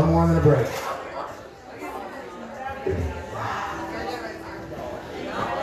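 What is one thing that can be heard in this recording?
An elderly man sings into a microphone, heard through a loudspeaker.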